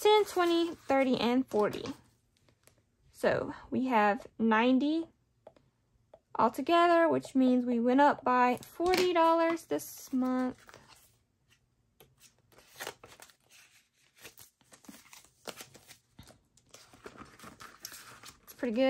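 Paper banknotes rustle and crinkle as they are handled.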